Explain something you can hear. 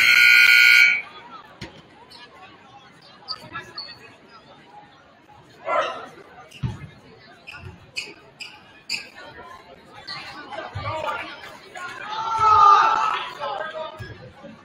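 A crowd cheers and chatters in a large echoing gym.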